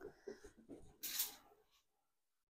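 A spray bottle hisses in a short burst.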